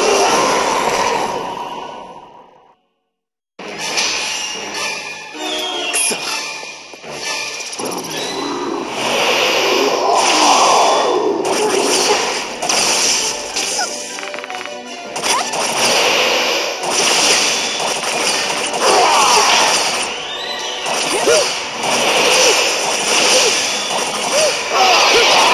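Dramatic orchestral game music plays loudly.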